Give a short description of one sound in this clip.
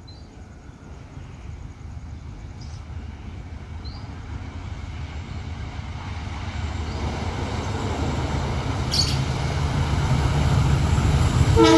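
A locomotive engine rumbles louder as it approaches.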